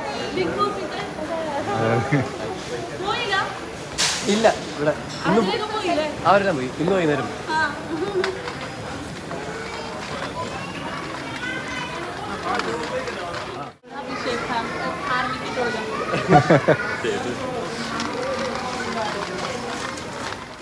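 A busy indoor crowd murmurs in the background.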